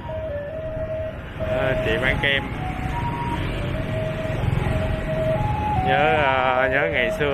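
A motorbike engine hums steadily on a street.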